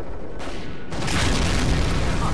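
An explosion booms with a rushing blast.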